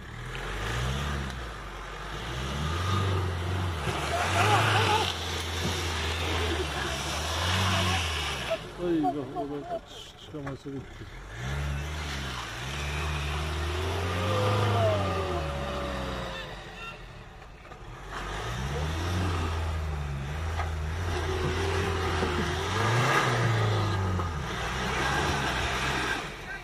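Tyres churn and slip in mud.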